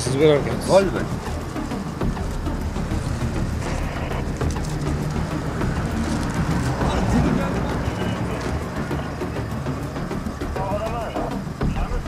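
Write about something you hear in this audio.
A van engine idles with a low rumble.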